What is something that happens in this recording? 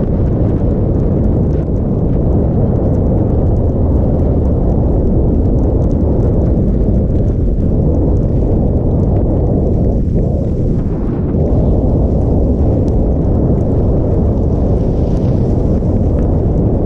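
Wind rushes loudly past a skier moving fast downhill.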